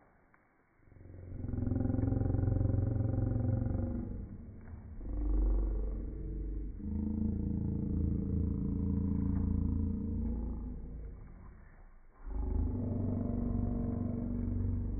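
A young girl speaks close by.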